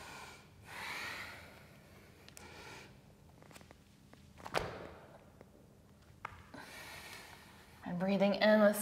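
A woman breathes out heavily.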